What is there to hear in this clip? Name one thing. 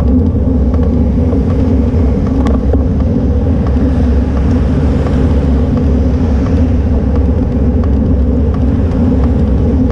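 Cars drive past close by.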